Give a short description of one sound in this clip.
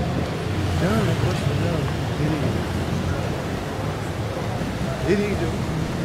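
Men and women chat in passing nearby.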